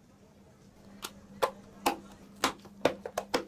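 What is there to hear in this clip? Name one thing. Plastic lids snap onto cups with sharp clicks.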